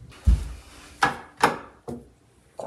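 A light switch clicks.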